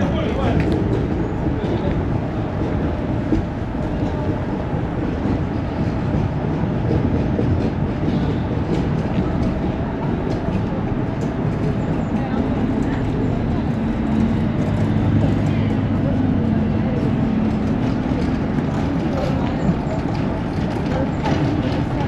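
Footsteps tap on a paved walkway outdoors.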